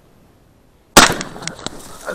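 A shotgun fires one loud shot outdoors.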